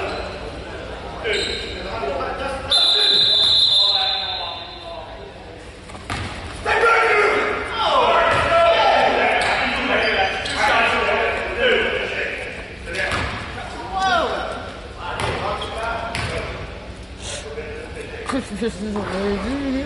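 A crowd talks and cheers in a large echoing gym.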